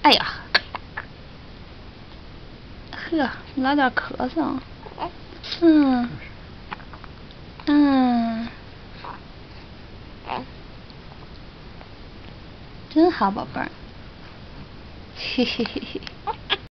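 A woman talks softly and playfully up close.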